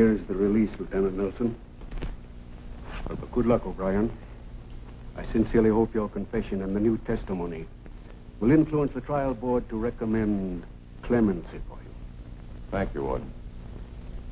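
An elderly man speaks earnestly, close by.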